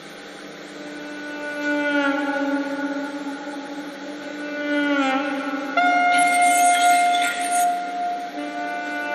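A saxophone plays a melody.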